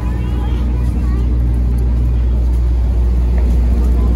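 A parked truck's engine hums steadily nearby.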